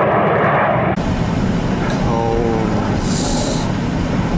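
A car engine hums as the car drives along.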